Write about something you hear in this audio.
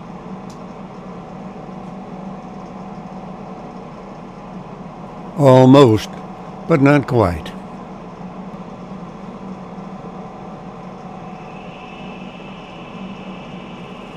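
A wood lathe spins with a steady hum.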